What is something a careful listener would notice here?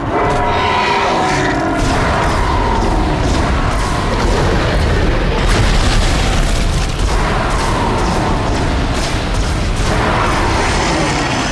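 A weapon fires in bursts of loud shots.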